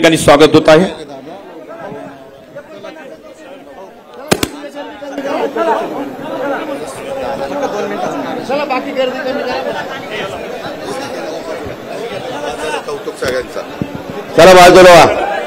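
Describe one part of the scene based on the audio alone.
A crowd of men murmurs and chatters nearby.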